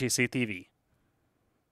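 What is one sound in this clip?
A man speaks with animation through a headset microphone.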